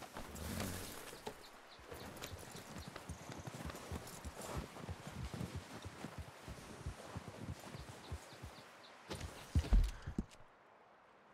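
Horse hooves thud and crunch through snow.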